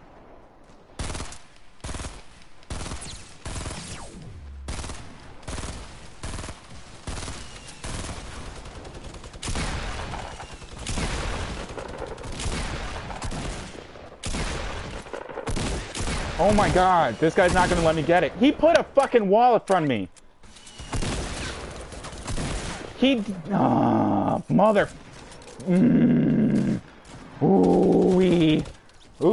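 Gunshots and building thuds from a video game crack repeatedly.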